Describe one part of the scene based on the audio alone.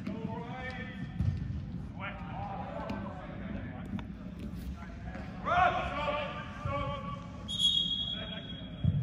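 Young players shout to each other in a large echoing hall.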